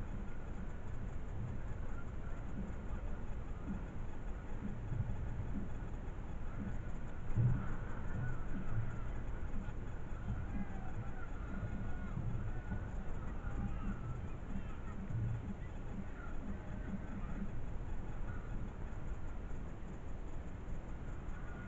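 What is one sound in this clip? Wind blusters outdoors, rumbling against the microphone.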